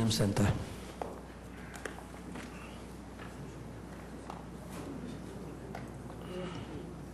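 Chairs and papers knock and rustle now and then.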